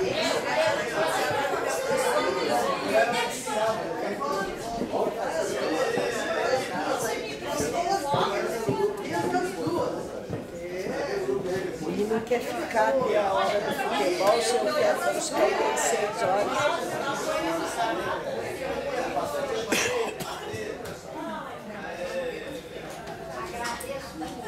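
Several men and women talk and chatter close by.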